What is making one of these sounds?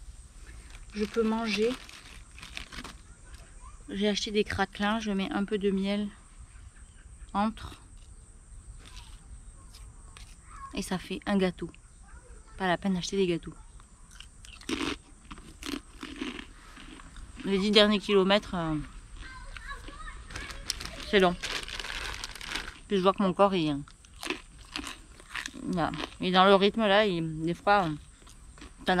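A woman talks casually and close by, with pauses.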